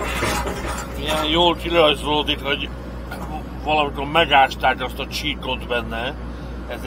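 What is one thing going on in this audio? A man talks nearby over the engine noise.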